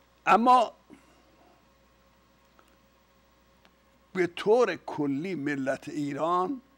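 An elderly man speaks calmly and clearly into a close microphone, with a long pause.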